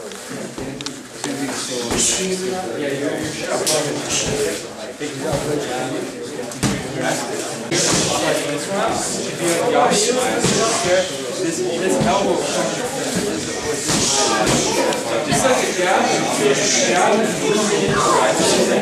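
Many people talk at once in a loud echoing room.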